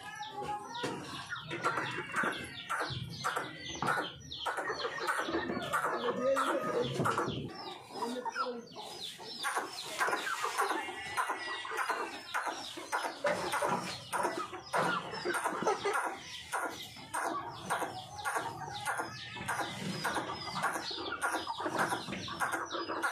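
Young chickens chirp and cluck loudly nearby.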